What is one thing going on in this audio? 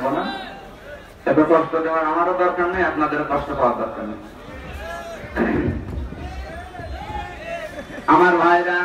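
A man preaches loudly and with fervour through a microphone and loudspeakers, in a large echoing space.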